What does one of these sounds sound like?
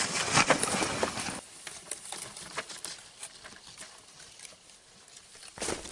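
A plastic cooler scrapes as it is dragged over snow.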